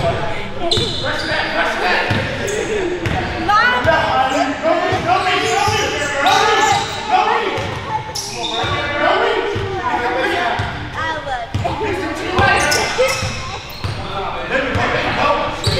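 Sneakers squeak sharply on a gym floor in a large echoing hall.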